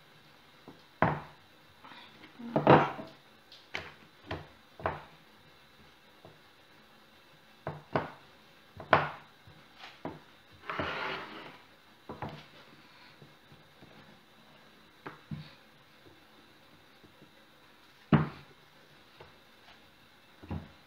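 A wooden rolling pin knocks and rolls on a board.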